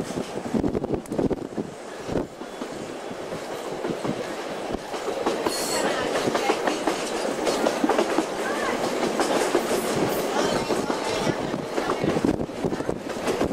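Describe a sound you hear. A train rattles and clatters steadily along the track.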